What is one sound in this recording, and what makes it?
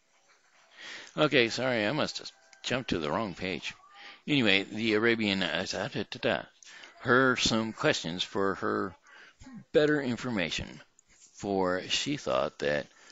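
An older man speaks calmly and close into a headset microphone.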